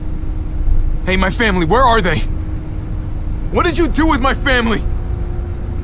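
A young man speaks pleadingly and angrily, close by.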